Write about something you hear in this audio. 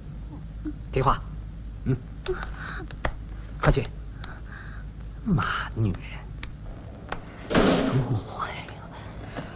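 A woman sobs and gasps quietly.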